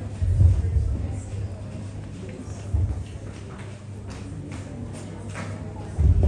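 A woman speaks through a microphone and loudspeaker.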